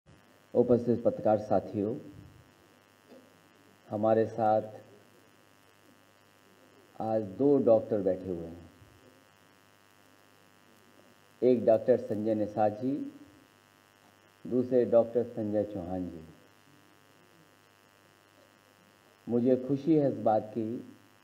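A man speaks into a microphone in short, deliberate phrases with pauses between them.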